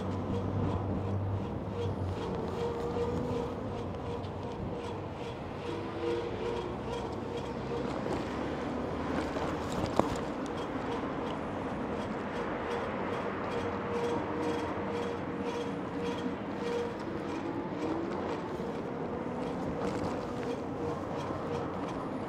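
Bicycle tyres roll on pavement.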